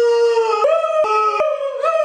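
A man groans.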